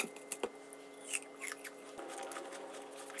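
A knife peels the skin off an apple with soft scraping.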